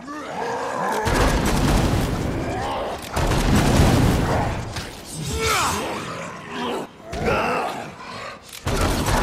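Blades slash and thud into bodies in heavy, rapid strikes.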